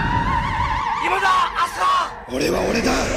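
A man shouts loudly and fiercely.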